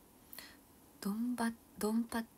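A young woman speaks brightly and close to a microphone.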